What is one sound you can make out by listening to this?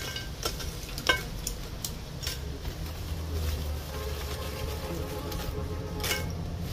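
Small items clink and knock against a metal pot.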